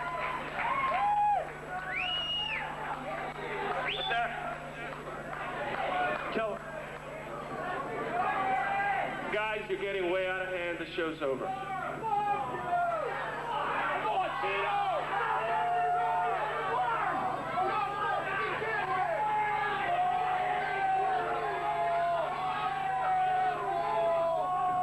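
A crowd of people talks and shouts in a crowded, echoing room.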